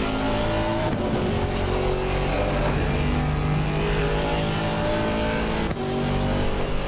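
A race car gearbox shifts up with a brief dip in the engine note.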